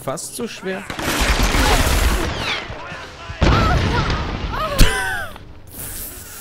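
Gunfire and explosions boom and rumble.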